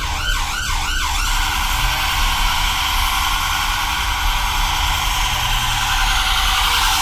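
A bus interior rattles and hisses as it moves along.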